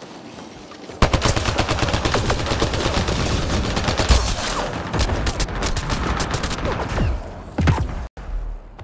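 Rapid gunfire rattles loudly.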